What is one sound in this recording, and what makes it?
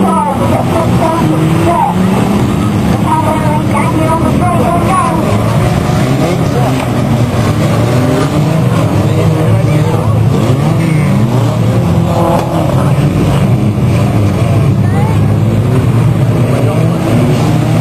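Car engines roar and rev as cars race around a track.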